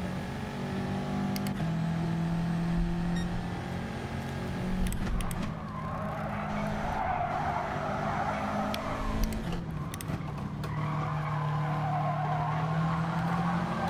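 A racing car engine roars and shifts through gears.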